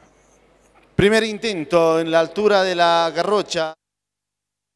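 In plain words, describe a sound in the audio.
A young man shouts loudly and excitedly nearby.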